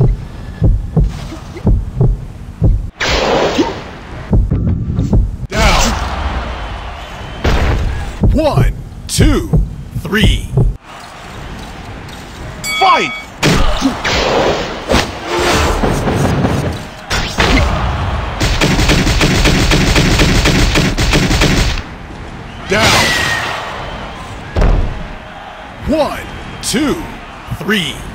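Heavy punches land with loud thuds and smacks.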